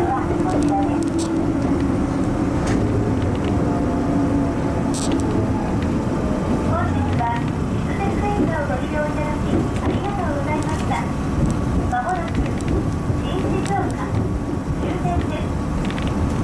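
A train rumbles steadily along the rails, heard from inside the cab.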